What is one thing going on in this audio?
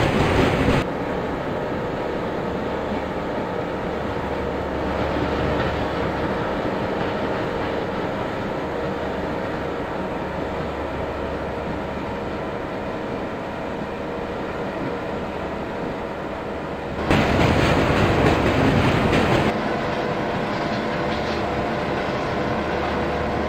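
A diesel train engine rumbles steadily as the train rolls along the tracks.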